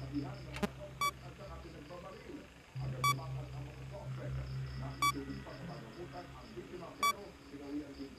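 An electronic alarm beeps at a steady pace.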